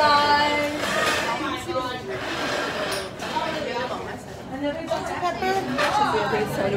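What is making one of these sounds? Young women talk and chatter close by in a busy, noisy room.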